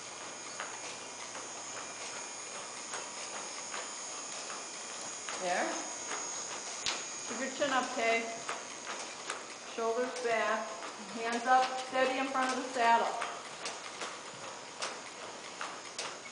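A horse walks with soft hoof thuds on dirt.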